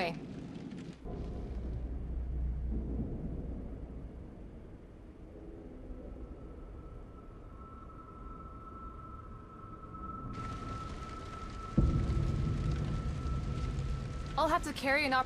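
Fires roar and crackle.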